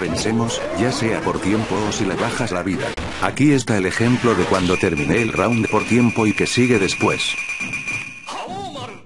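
Swords clash with sharp metallic strikes.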